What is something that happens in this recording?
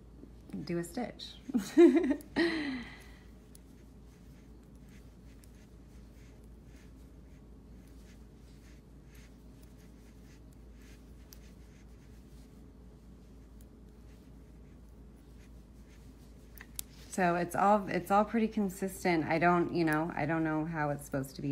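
Knitting needles click softly together.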